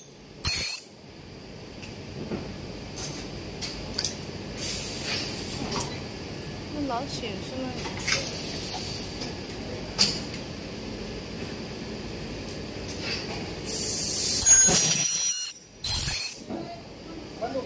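Loud hisses of air burst from a press.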